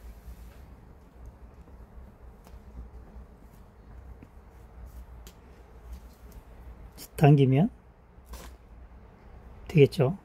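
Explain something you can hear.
A cord rustles softly as hands twist it.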